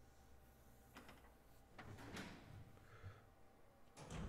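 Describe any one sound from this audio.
A metal door creaks slowly open.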